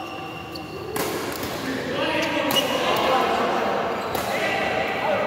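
A shuttlecock is struck sharply with rackets in an echoing hall.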